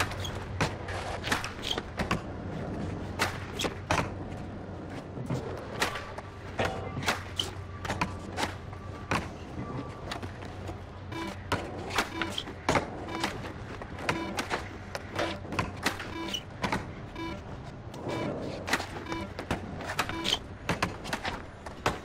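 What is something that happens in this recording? A skateboard clacks and snaps sharply during tricks.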